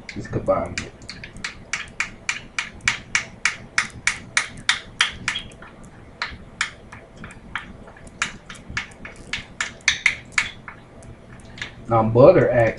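A spoon clinks and scrapes rapidly against a small glass bowl.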